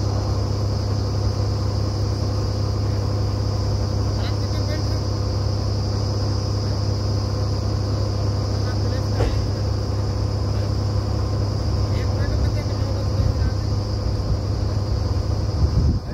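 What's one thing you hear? A drilling rig's diesel engine roars and rumbles steadily close by.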